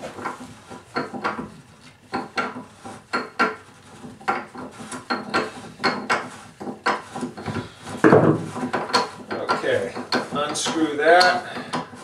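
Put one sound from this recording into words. A metal tool clicks and scrapes against a drain in a tub.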